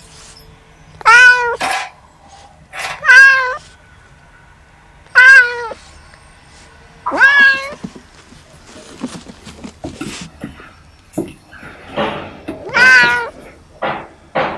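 Kittens meow loudly and repeatedly, close by.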